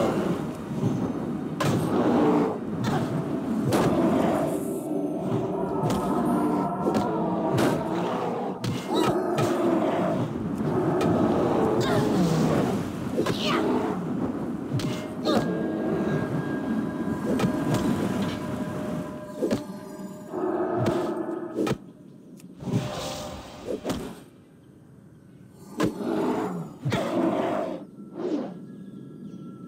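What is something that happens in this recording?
Weapons strike and thud in a fight.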